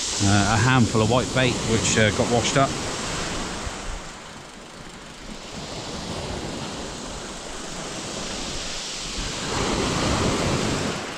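Waves break and wash up on a pebble shore.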